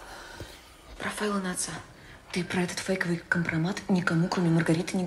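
A young woman speaks with agitation close by.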